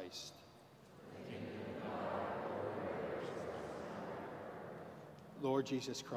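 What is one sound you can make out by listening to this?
A crowd murmurs a response together in a large echoing hall.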